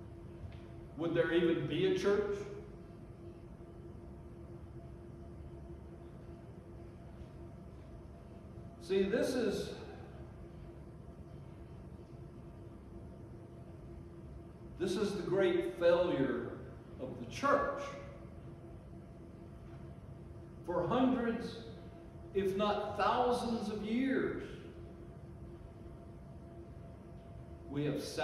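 An elderly man speaks slowly and with feeling into a microphone, with long pauses, in a room with a slight echo.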